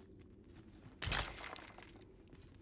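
A pickaxe strikes rock with a sharp clang.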